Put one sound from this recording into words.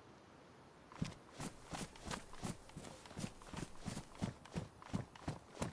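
Quick running footsteps thud steadily on the ground.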